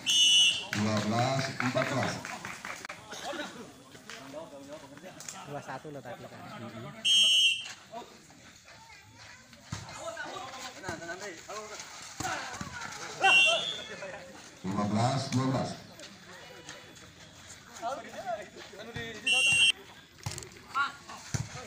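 Players shout and call out to each other outdoors.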